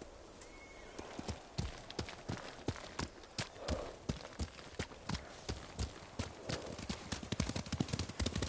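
Horses' hooves thud rapidly on a dirt path.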